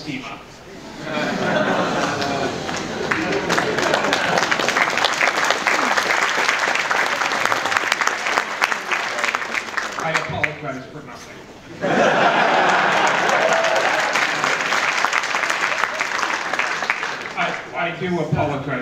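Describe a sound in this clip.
A large audience cheers and claps loudly in an echoing hall.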